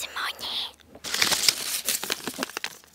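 Plastic crinkles and rustles right next to a microphone.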